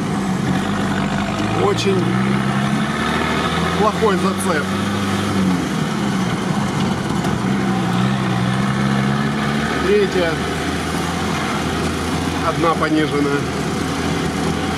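An engine drones steadily, rising and falling as it works.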